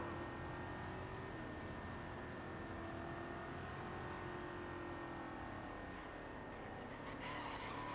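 A sports car engine roars steadily at high speed.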